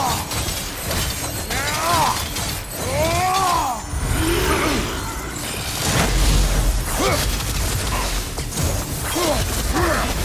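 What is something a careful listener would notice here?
Flames roar and crackle from a fiery sweep.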